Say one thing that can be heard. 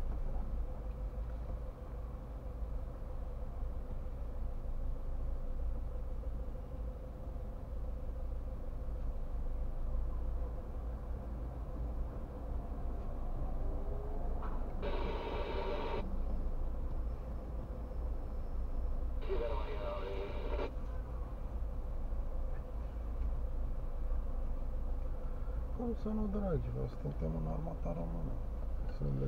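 A car engine idles with a steady low rumble.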